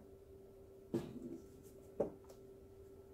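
A canvas is set down on a table with a soft knock.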